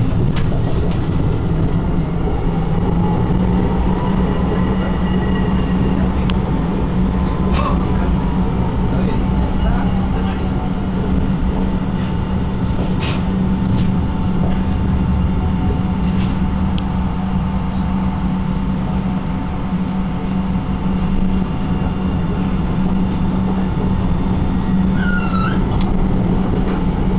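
A tram engine hums steadily as the tram rolls along.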